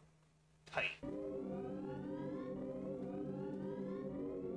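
Electronic game music plays steadily with a slowly rising tone.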